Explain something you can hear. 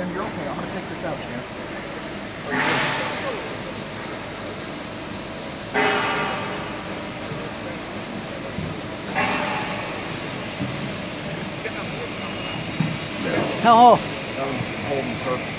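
Metal parts clink and click.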